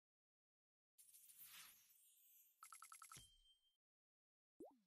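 Coins jingle as they are collected.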